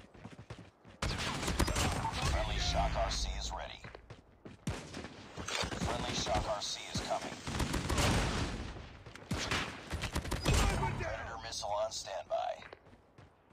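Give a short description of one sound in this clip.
Rapid gunfire bursts loudly.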